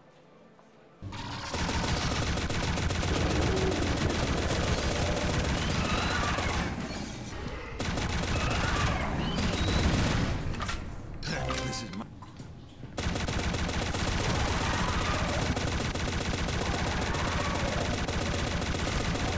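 Game guns fire in rapid bursts.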